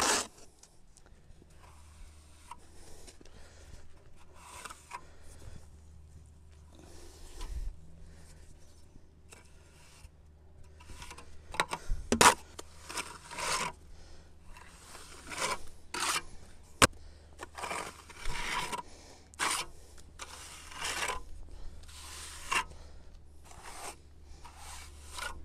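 A trowel scrapes wet mortar against concrete blocks in short strokes.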